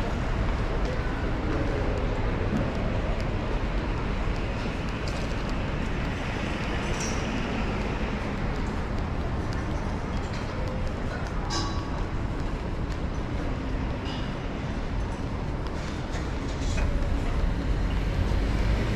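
Traffic rumbles steadily on a nearby street.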